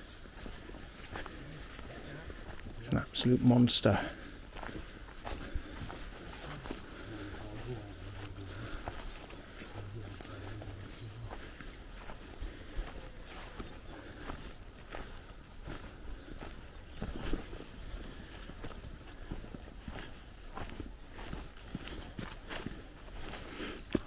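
Footsteps crunch through dry leaves outdoors.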